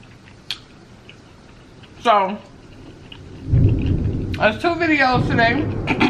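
Crispy food crunches as a young woman bites and chews.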